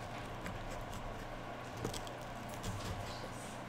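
A knife cuts through pizza crust.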